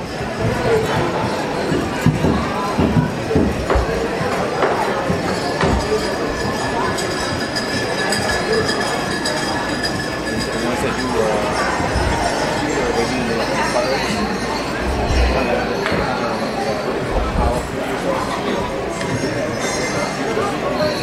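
Small metal jingles rattle and chime with each dance step.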